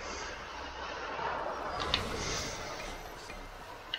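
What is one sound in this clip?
Magic blasts crackle and zap close by.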